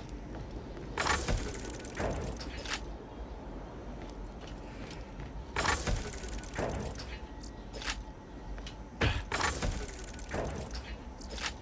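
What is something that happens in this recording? A metal crate lid snaps open with a sharp mechanical clank.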